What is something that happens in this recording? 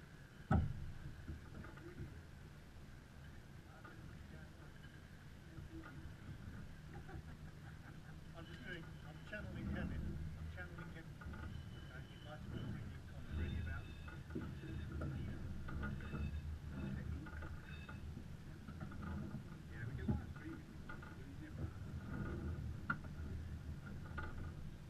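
Water splashes against a sailboat's hull.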